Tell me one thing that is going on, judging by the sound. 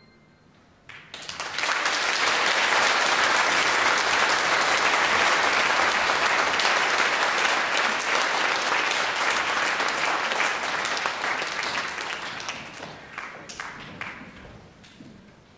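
An audience applauds loudly in a large hall, then the clapping fades away.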